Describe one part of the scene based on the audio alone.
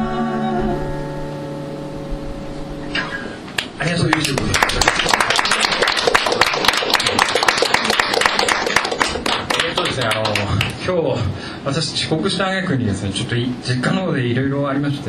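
Acoustic guitars strum loudly through loudspeakers.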